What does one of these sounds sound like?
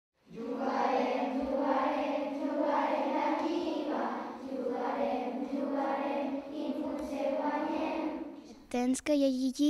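A group of children sings together in an echoing room.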